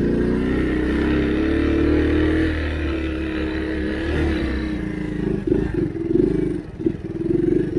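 A small motorbike engine runs close by with a buzzing drone that wavers in pitch.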